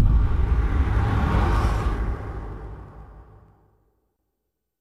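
A heavy gun fires a rapid, roaring burst that fades away.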